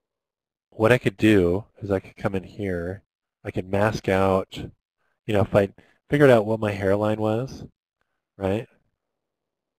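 A man talks calmly into a headset microphone.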